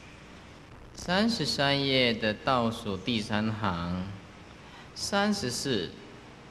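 A man speaks calmly into a close microphone, reading out.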